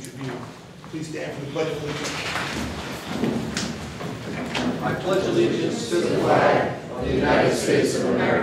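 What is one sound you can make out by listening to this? Several men talk at once.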